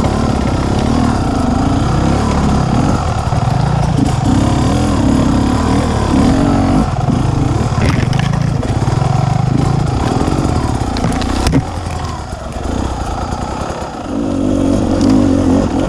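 A dirt bike engine revs up and down up close.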